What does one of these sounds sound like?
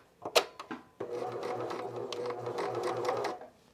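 A sewing machine runs with a steady, fast whirring hum.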